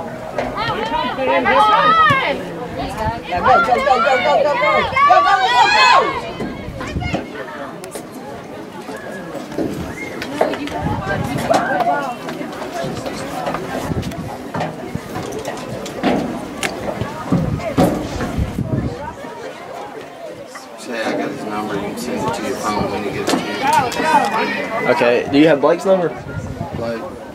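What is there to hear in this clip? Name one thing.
Women shout and cheer close by, outdoors.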